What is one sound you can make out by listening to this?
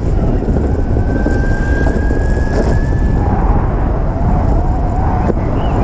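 Wind rumbles and buffets loudly against the microphone.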